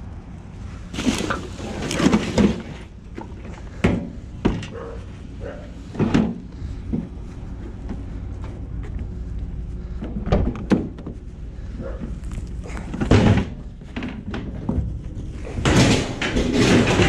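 A thin metal sheet clanks and scrapes as it is lifted and slid.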